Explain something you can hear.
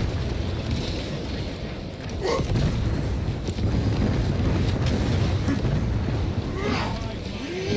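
Heavy weapon blows strike and clang.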